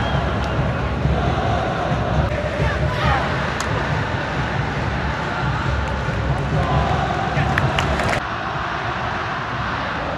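Drums pound steadily in the stands.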